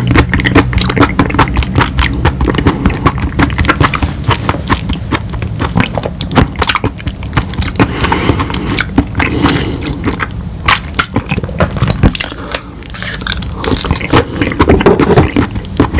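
A man chews and crunches food loudly and close up.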